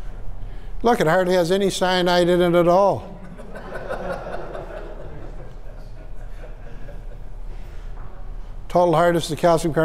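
An older man speaks calmly to a small room.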